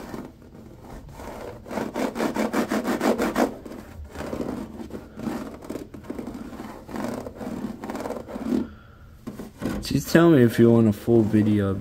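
Fingers rattle and click against plastic slats.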